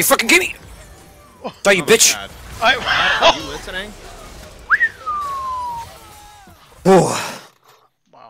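Video game combat effects zap, clash and burst in quick succession.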